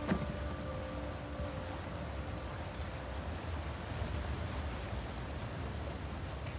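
Water rushes and churns steadily.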